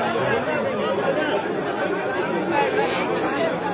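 A young man speaks close by, talking with animation.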